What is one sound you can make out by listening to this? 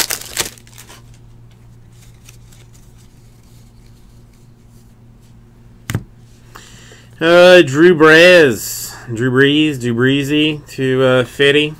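Trading cards are flipped through by hand, one after another.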